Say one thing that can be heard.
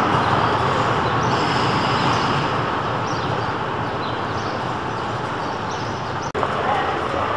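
A tram rumbles along its rails and moves away.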